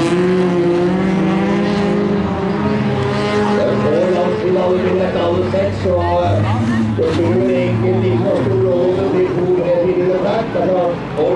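Car engines roar and rev up and down.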